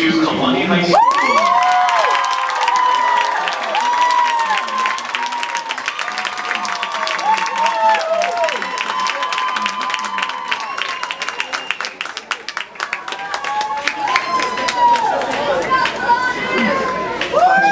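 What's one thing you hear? A crowd of young people cheers and whoops outdoors in an open stadium.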